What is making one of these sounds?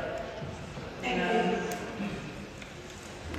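A woman speaks briefly into a microphone in a room with a slight echo.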